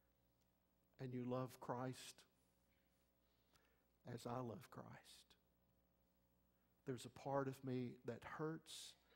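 A middle-aged man preaches with animation through a microphone in an echoing hall, pausing between phrases.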